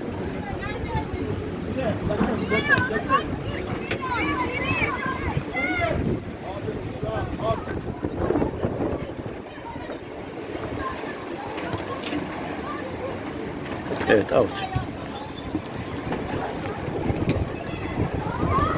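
Young women shout to each other across an outdoor pitch.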